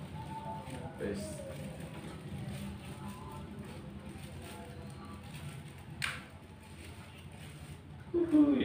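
Paper rustles and crinkles in a woman's hands.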